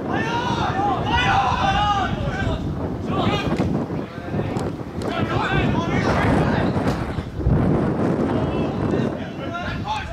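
Young men shout and call out to each other outdoors.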